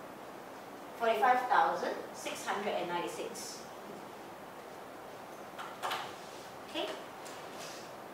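A young woman speaks calmly, explaining.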